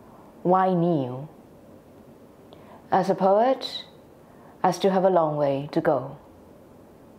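A young woman sings a few drawn-out phrases close by, with long pauses between them.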